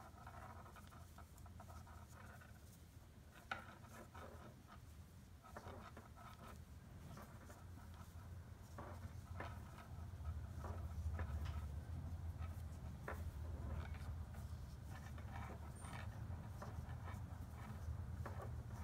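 Metal knitting needles click and tap softly against each other.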